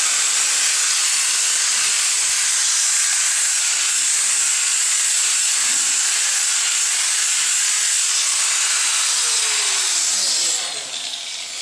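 An angle grinder whines loudly as it grinds along a stone edge.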